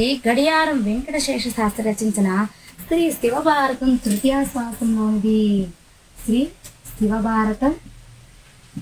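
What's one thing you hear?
A young woman speaks clearly and with animation, close by.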